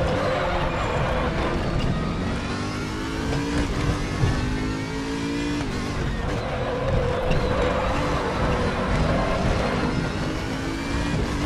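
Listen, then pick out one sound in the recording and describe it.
A racing car engine roars loudly, its pitch rising and falling through gear changes.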